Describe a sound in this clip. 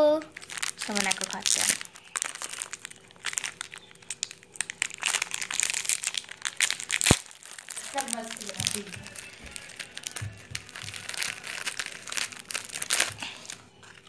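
A plastic biscuit wrapper crinkles and rustles.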